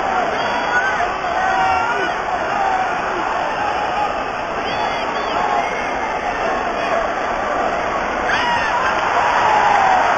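A large crowd cheers and shouts in an indoor arena.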